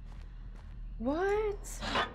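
A young woman speaks into a close microphone with animation.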